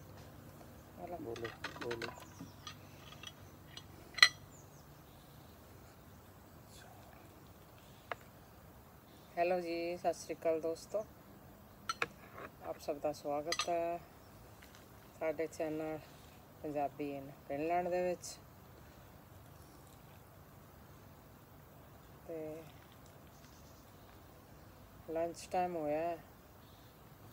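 An elderly woman speaks calmly nearby, in short bursts.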